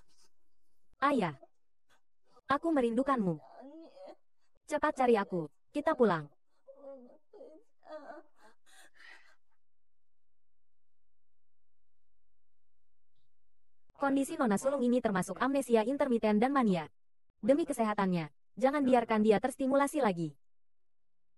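A young man speaks in a pained, pleading voice.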